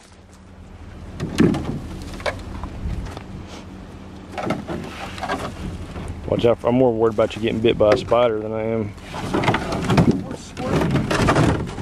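A wooden board scrapes and knocks against a wooden frame.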